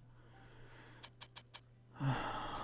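Short, soft clicks sound as letters are typed in quick succession.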